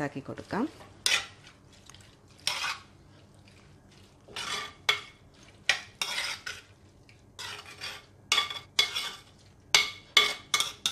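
Onion pieces rustle and scrape in a pan as they are mixed by hand.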